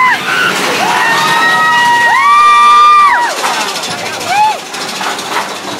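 Riders scream loudly on a roller coaster.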